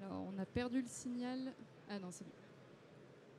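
A woman speaks into a microphone, heard through loudspeakers in a large room.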